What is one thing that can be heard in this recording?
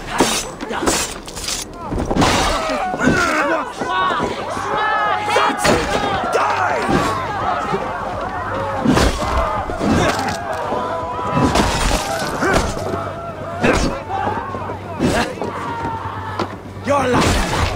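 Swords clash and weapons strike in a fast, close fight.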